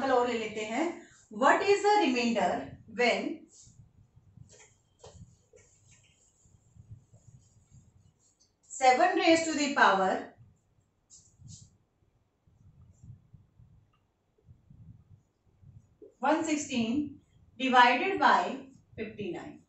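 A woman speaks calmly and clearly, close by, as if teaching.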